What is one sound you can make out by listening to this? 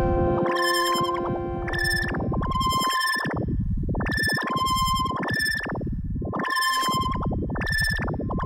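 An electronic synthesizer plays a pulsing, rhythmic pattern of bright, chiming tones.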